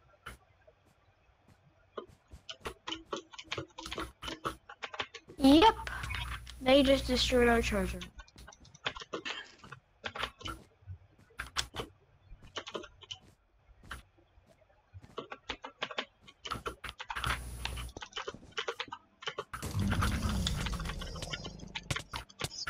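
Game blocks are placed and broken with quick, soft clicks.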